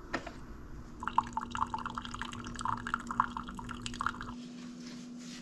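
A coffee machine whirs as it brews.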